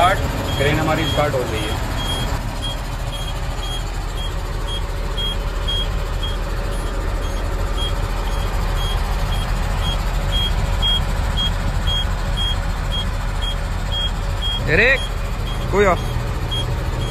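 A heavy machine's engine rumbles steadily from inside its cab.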